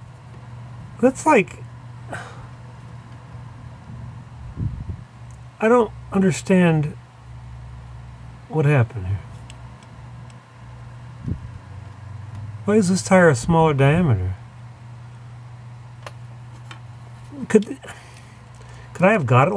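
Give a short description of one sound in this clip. An older man talks calmly and close by, in short bursts.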